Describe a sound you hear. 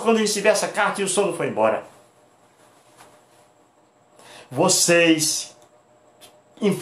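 A middle-aged man speaks with animation close to the microphone, pausing between phrases.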